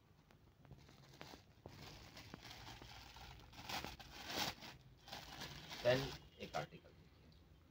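Plastic wrapping rustles and crinkles in hands.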